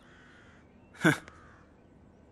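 A man laughs briefly.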